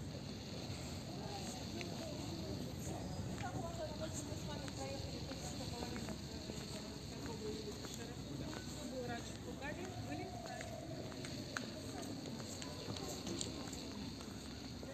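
Men and women chatter at a distance outdoors.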